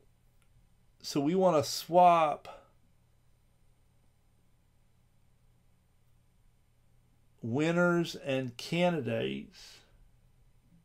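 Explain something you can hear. An elderly man speaks calmly into a microphone in short bursts.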